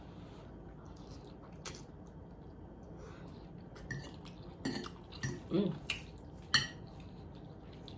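A woman slurps noodles and chews wetly, close to a microphone.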